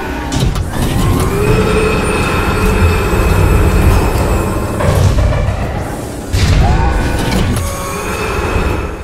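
A heavy machine rumbles and whirs steadily.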